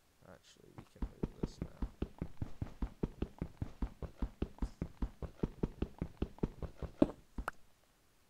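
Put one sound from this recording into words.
An axe chops at wood in quick, steady knocks.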